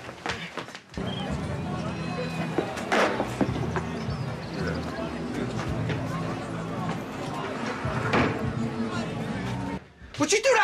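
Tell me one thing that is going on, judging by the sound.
A busy outdoor crowd murmurs with chatter.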